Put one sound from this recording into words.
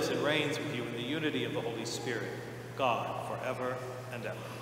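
A middle-aged man speaks calmly through a microphone in a large echoing hall.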